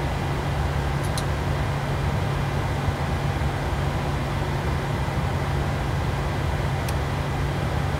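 A cockpit switch clicks.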